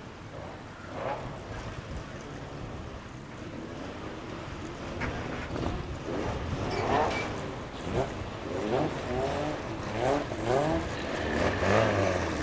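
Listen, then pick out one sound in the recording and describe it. Stock car engines roar and rev as the cars race on a muddy track outdoors.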